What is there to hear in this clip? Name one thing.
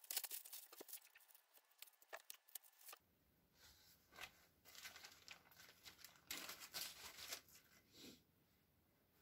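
Plastic wrapping rustles and crinkles as it is pulled off a roll.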